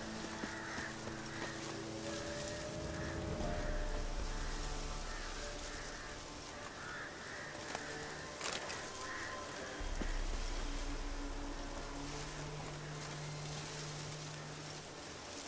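Footsteps crunch softly over grass and leaves.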